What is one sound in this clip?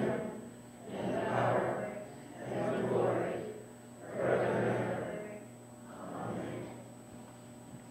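A man chants slowly in a low voice in an echoing room.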